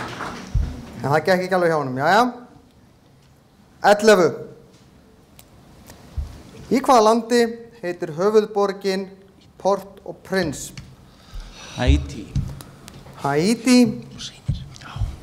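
A man speaks calmly through a microphone in a hall.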